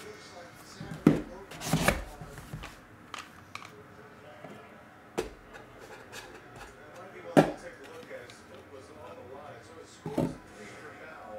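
Plastic cases click and knock as hands handle them.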